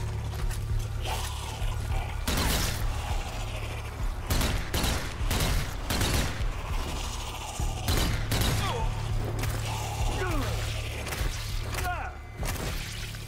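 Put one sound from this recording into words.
Monsters snarl and shriek.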